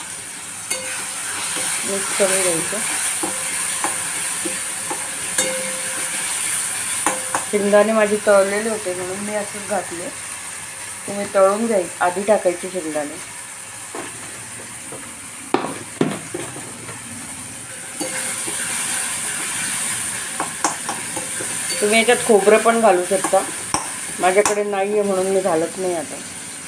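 A metal spoon scrapes and taps against a pan.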